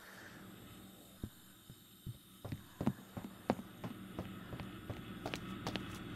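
Footsteps tap across a wooden floor.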